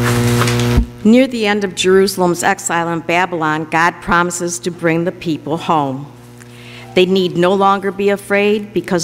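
A man reads aloud through a microphone in a large echoing hall.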